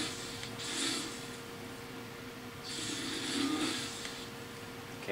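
Electricity crackles and buzzes in short bursts.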